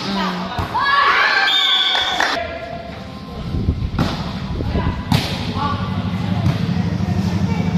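Young women shout and cheer with excitement nearby.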